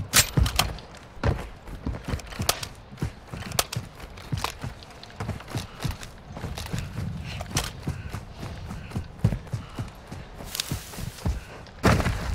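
Footsteps thud quickly over rough ground.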